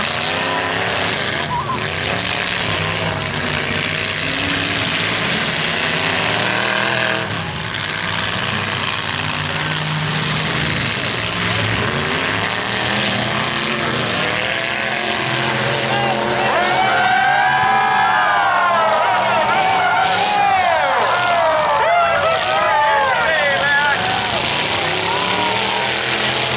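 Car engines roar and rev loudly outdoors.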